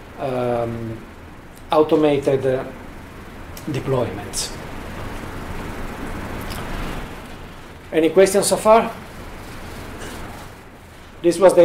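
A man speaks calmly to an audience through a microphone.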